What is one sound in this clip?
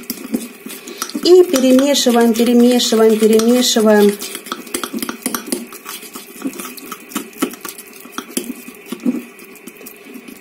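A fork rapidly clinks against a ceramic bowl.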